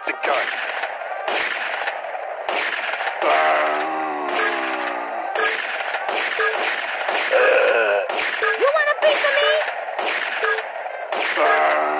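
Shotgun blasts ring out.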